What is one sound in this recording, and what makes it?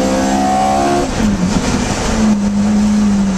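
A Hillman Imp racing car engine changes gear, its note dropping and then rising again.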